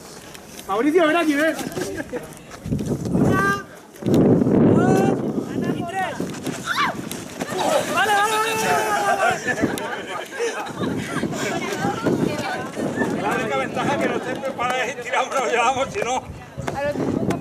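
A crowd of men and women shouts and cheers outdoors.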